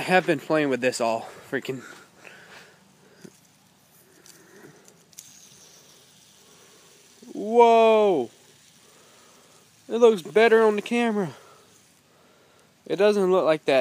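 A fidget spinner whirs softly as it spins.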